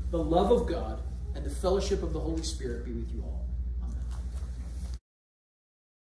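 A man speaks with animation through a microphone in a large echoing room.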